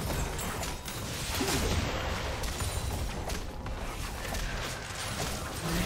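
Fantasy battle sound effects crackle and boom as spells and weapons clash.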